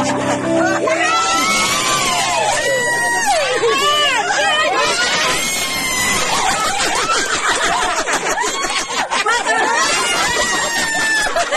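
A young child squeals and laughs.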